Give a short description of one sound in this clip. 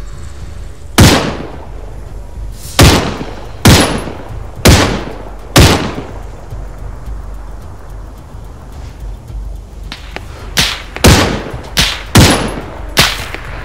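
Loud rifle shots crack one after another, with a rolling echo.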